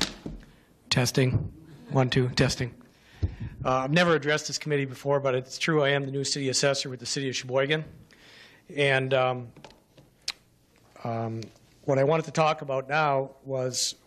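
A middle-aged man speaks calmly into a microphone, heard through a loudspeaker in an echoing room.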